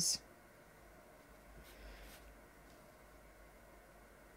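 A paintbrush dabs softly on paper.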